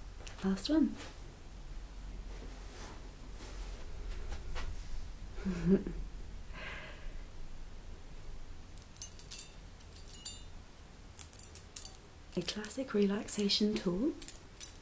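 A young woman speaks softly and close by.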